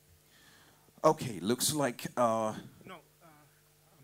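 A man speaks loudly for a moment nearby.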